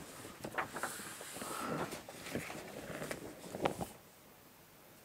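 Stiff paper rustles and slides under hands.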